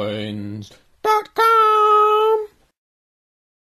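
A man sings a long held note close up.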